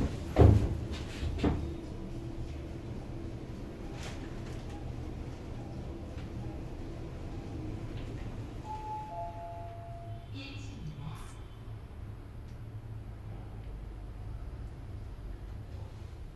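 An elevator hums low and steadily as it rises.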